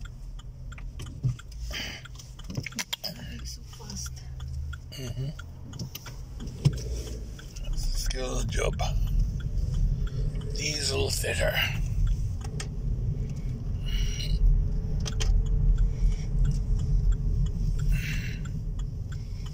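A car engine rumbles low, heard from inside the car, growing louder as it drives off.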